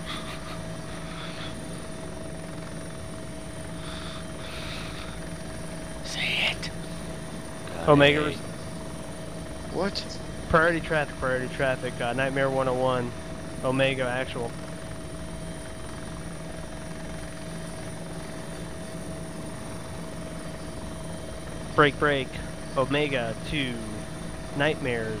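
A helicopter engine drones steadily.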